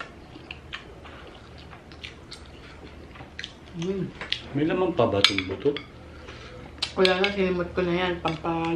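Cutlery clinks and scrapes against a glass bowl.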